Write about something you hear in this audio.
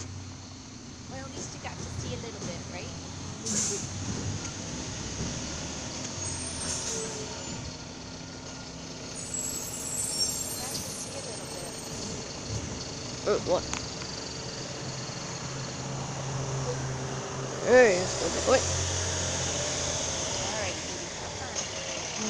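A garbage truck's engine rumbles steadily a little way off.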